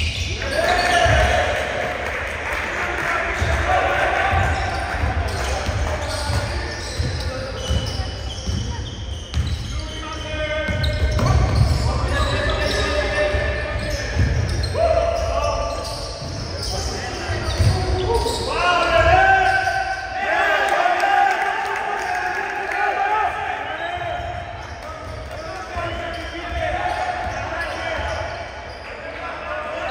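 A small crowd murmurs and calls out in an echoing hall.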